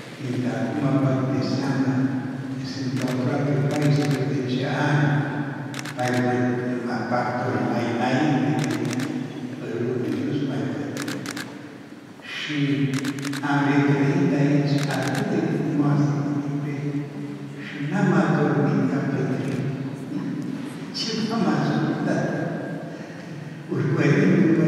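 An elderly man speaks calmly into a microphone, heard through a loudspeaker in an echoing room.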